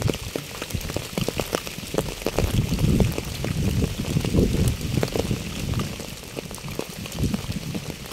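Rain patters steadily on a wet path and fallen leaves outdoors.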